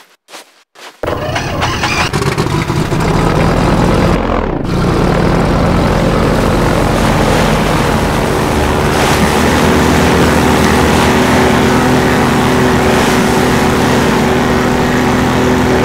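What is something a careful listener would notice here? A vehicle engine drones steadily and rumbles over rough ground.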